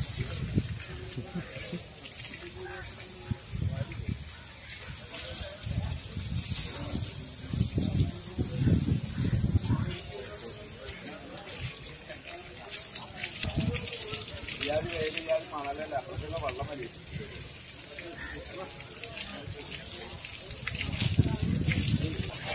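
Water splashes on the ground near an elephant's feet.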